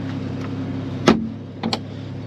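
A car's front lid slams shut with a thud.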